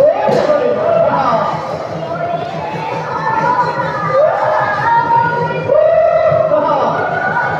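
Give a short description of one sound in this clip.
Voices sing a wavering melody.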